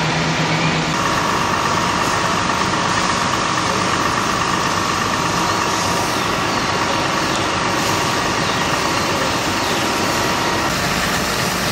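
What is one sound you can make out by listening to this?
A fire engine's pump hums steadily.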